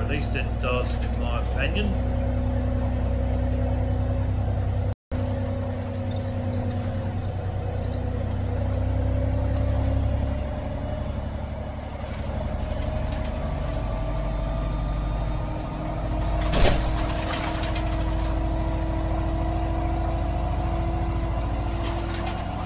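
A bus engine hums steadily, its pitch rising and falling as it drives.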